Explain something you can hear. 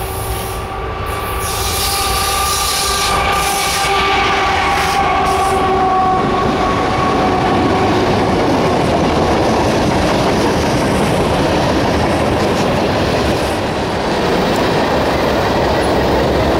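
Train wheels rumble and clatter steadily along the rails.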